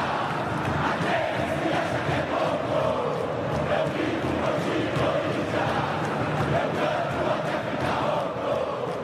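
A huge stadium crowd chants and sings loudly in unison.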